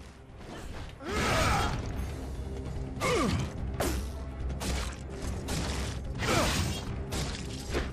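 A knife slashes wetly into flesh.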